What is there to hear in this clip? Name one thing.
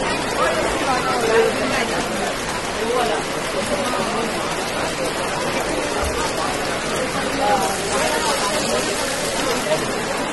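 Men shout to each other.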